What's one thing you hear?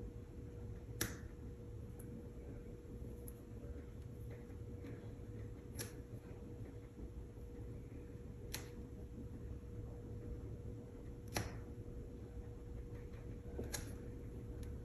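A paintbrush clicks against a paint palette now and then.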